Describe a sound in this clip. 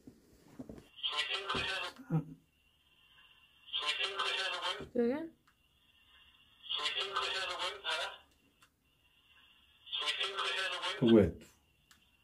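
A small handheld device gives out short bursts of crackly, distorted sound.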